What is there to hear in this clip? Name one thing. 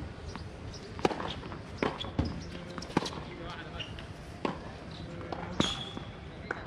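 A tennis ball is struck with a racket, with sharp pops.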